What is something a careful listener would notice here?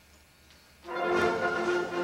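An orchestra begins to play loudly in an echoing hall.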